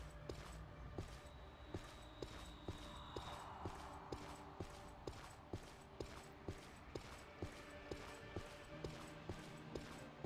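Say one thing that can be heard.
Footsteps crunch steadily on dirt ground.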